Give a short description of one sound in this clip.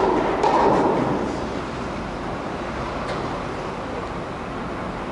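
A tennis ball is struck with a racket, echoing in a large indoor hall.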